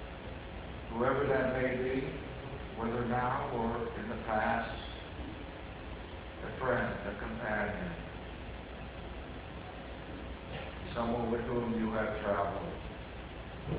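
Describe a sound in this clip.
A man speaks slowly, with pauses, in a room with a slight echo.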